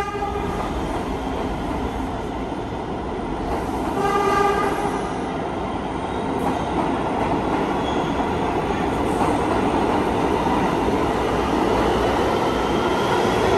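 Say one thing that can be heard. A subway train rushes past close by with a loud, steady roar and rattle.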